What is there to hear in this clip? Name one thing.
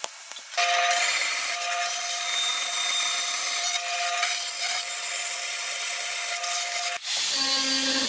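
A band saw cuts through sheet metal with a steady whine.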